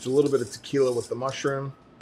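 A spoon whisks liquid in a metal bowl.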